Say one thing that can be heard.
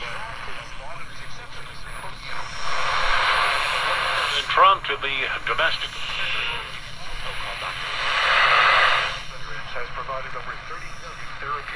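Snatches of tinny sound come and go through a small radio speaker.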